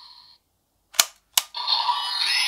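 Plastic parts of a toy click into place.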